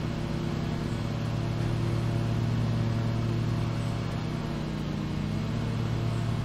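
Mower blades cut through thick grass.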